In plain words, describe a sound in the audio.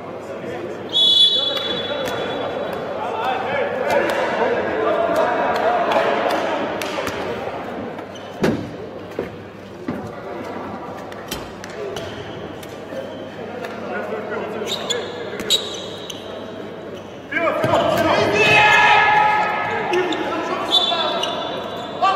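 Sports shoes squeak sharply on the court floor.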